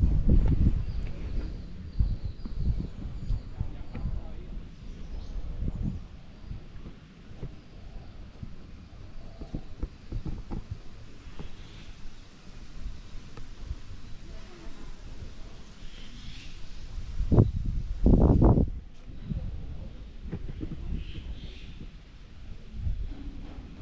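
Wind gusts against the microphone outdoors.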